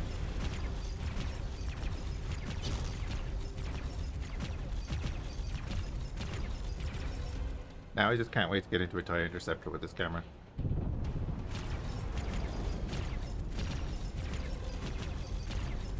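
A spaceship engine rumbles low and steadily.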